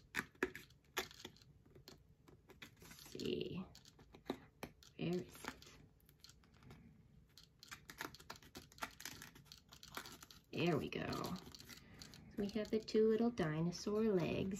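Stiff paper and cardboard rustle and tap as they are handled.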